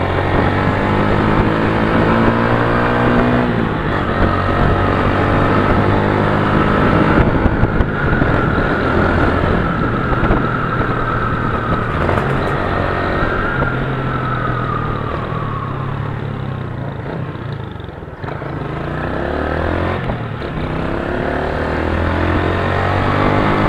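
A motorcycle engine roars steadily, rising and falling in pitch as it speeds up and changes gear.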